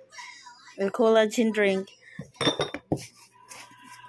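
Glass bottles clink against each other as one is lifted and put back.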